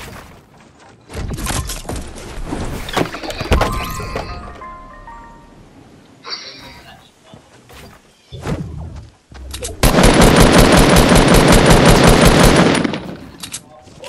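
Wooden walls snap into place with quick, sharp knocks.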